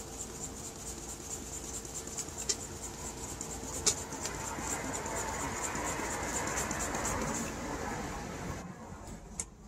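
A hand pump squeaks and hisses in quick, steady strokes.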